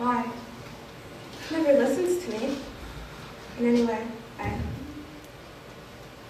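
Young women speak in a room with some echo.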